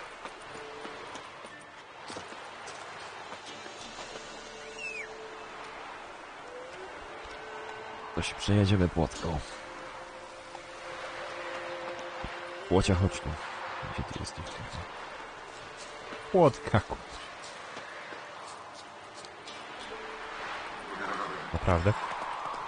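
A man talks into a close microphone in a lively voice.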